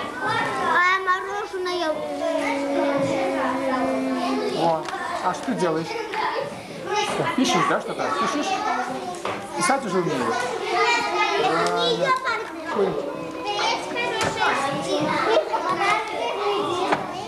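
Young children talk nearby.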